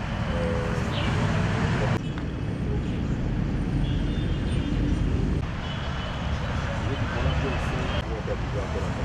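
A man speaks firmly to a group outdoors.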